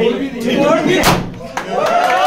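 A party popper bangs once.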